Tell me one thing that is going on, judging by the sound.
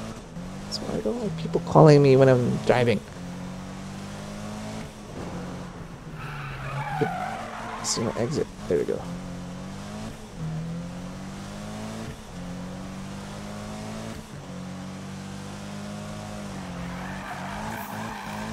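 A car engine drones steadily, rising and falling in pitch.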